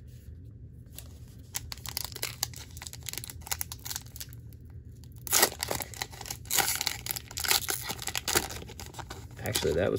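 A foil card pack crinkles and tears as it is opened.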